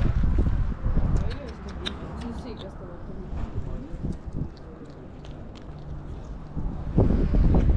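A puppy chews and tears at cardboard close by.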